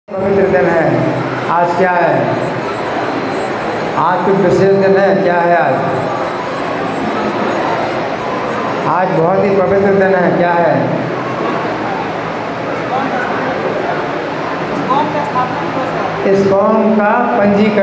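An elderly man speaks with animation through a microphone.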